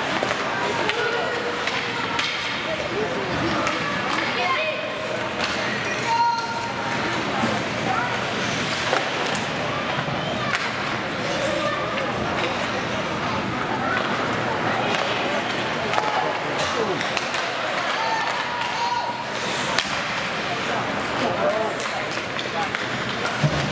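Skates scrape across the ice of a large echoing rink.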